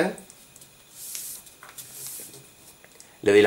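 Paper rustles and crinkles softly as it is folded.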